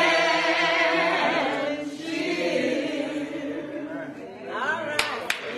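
People sing together in a room.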